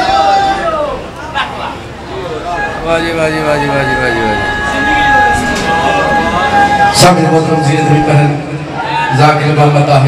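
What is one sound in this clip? A young man sings a lament through a loudspeaker microphone.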